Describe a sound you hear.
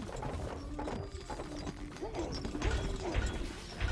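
Swords clash as soldiers fight in a battle.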